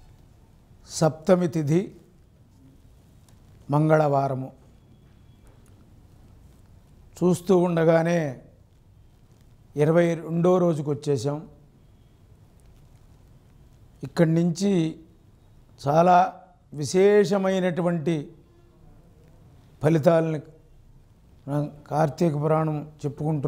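An elderly man speaks slowly and calmly into a microphone, pausing between phrases.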